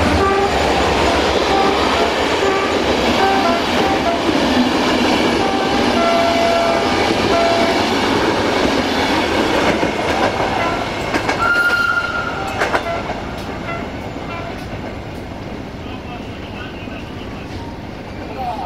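Train wheels rumble steadily on the rails.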